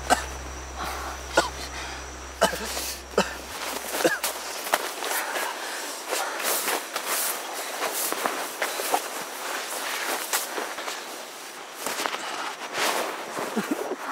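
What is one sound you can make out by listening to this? A young woman speaks softly and anxiously close by.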